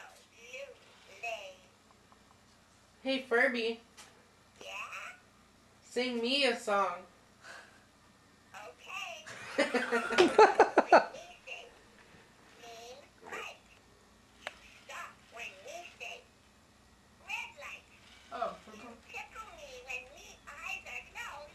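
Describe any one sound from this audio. A furry electronic toy chatters and babbles in a high, squeaky voice.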